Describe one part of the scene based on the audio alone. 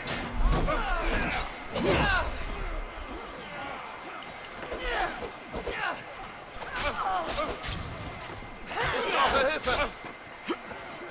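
Blades clash and strike in quick, sharp blows.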